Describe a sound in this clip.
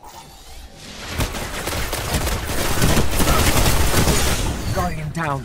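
Rapid gunfire and explosions crash loudly.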